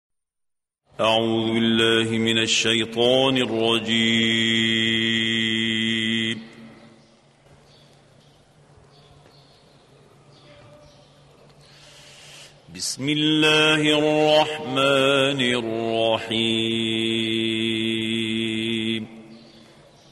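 An elderly man chants in a long, drawn-out melodic voice, heard through an old recording with pauses between phrases.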